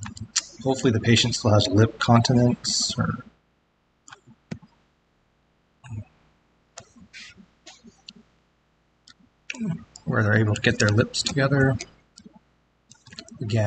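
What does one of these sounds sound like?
A man talks calmly through an online call.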